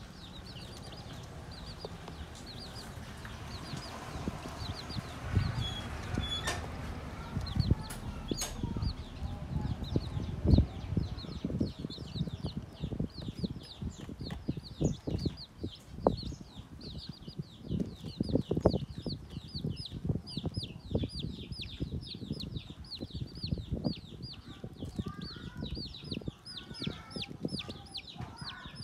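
Many chicks cheep rapidly and constantly, close by.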